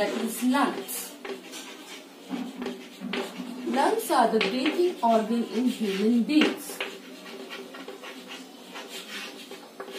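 Chalk scratches and taps on a board.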